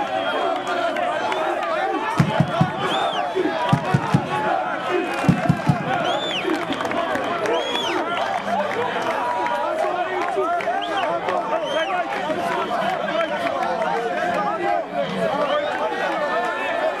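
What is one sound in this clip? A large crowd shouts, chants and cheers loudly outdoors.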